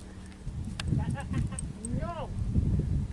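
A dog whines and yelps nearby.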